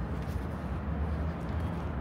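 A broom sweeps the pavement with scratchy strokes.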